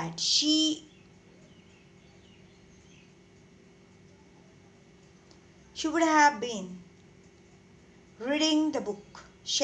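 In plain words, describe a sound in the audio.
A woman speaks calmly and clearly over an online call, in short phrases with pauses.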